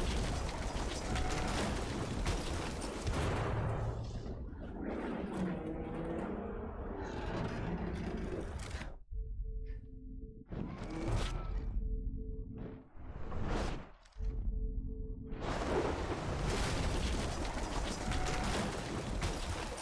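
Strong wind roars and gusts outdoors.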